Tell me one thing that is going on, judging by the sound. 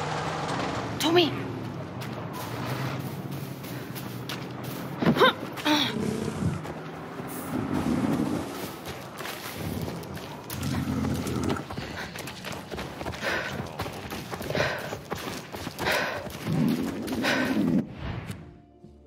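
Footsteps tread on grass and pavement.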